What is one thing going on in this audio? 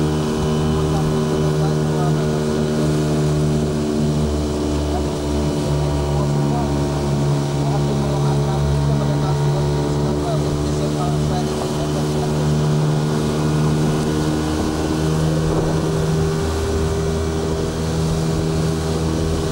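An outboard motor drones steadily close by.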